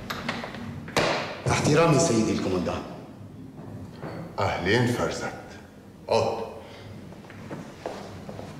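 A man speaks firmly in a quiet room.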